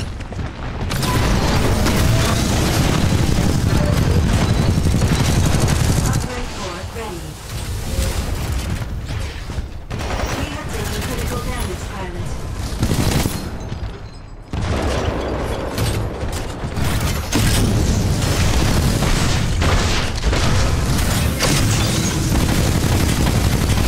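A heavy gun fires rapid, booming bursts.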